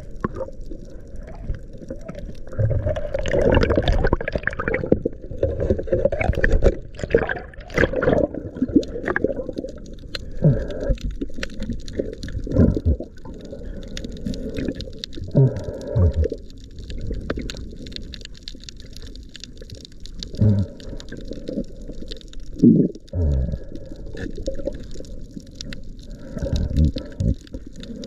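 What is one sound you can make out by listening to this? Water swishes and gurgles close by underwater.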